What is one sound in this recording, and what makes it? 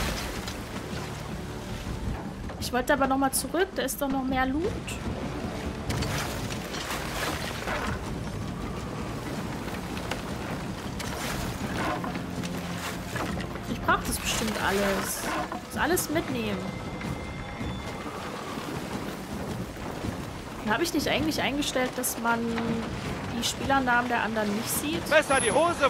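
Water splashes and rushes against the hull of a small sailing boat.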